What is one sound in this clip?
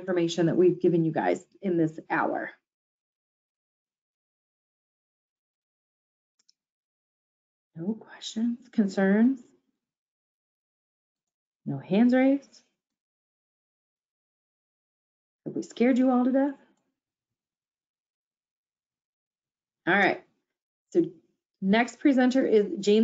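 A woman speaks calmly through an online call, with pauses.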